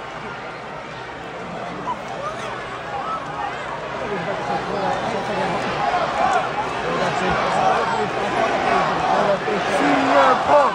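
A large arena crowd cheers and shouts, growing louder.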